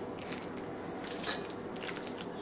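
A spoon scrapes food in a baking dish.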